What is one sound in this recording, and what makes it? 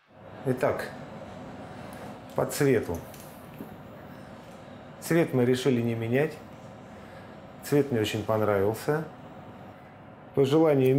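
A middle-aged man talks calmly close by, in short phrases.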